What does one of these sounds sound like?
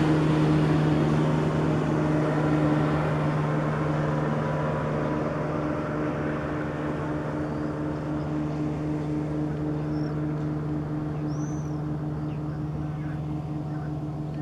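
Small waves lap softly on calm water.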